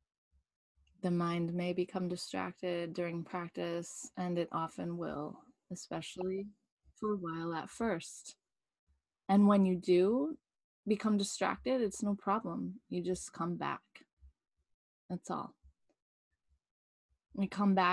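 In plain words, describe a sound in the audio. A woman speaks calmly and softly, close to a microphone.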